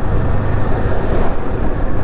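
A car drives past in the opposite direction.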